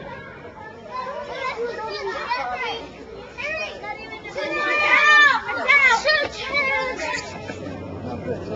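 Children chatter and shout excitedly outdoors.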